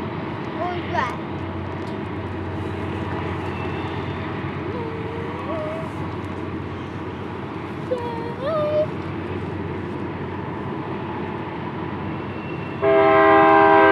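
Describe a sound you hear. A long freight train rumbles steadily in the distance.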